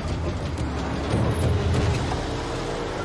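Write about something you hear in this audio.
A truck engine rumbles.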